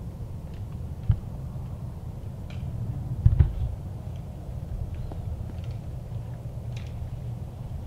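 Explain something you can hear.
Dry leaves rustle under deer hooves.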